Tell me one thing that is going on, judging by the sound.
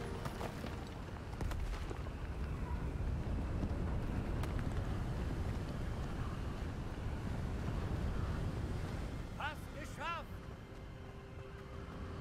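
Footsteps hurry up stone steps.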